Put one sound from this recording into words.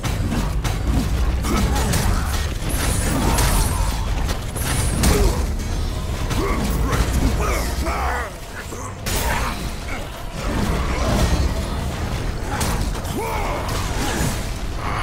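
Blades slash and strike against enemies in quick, repeated hits.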